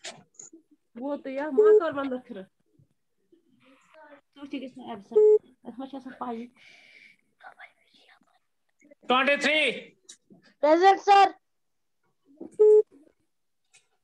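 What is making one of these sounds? A teenage boy speaks over an online call.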